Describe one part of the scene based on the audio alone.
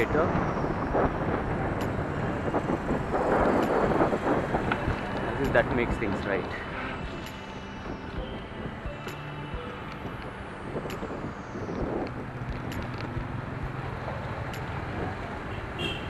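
Traffic rumbles steadily in the background.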